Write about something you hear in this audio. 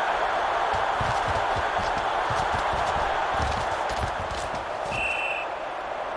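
Football players collide with dull thuds.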